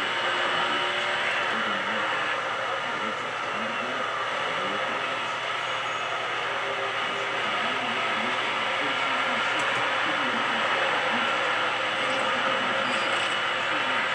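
A race car engine roars steadily through a loudspeaker.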